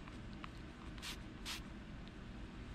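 A spray bottle hisses in two quick bursts.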